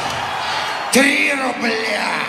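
A man sings loudly into a microphone.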